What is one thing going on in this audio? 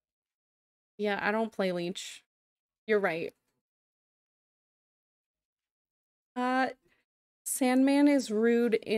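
A young woman talks with animation into a close microphone, in short bursts with pauses.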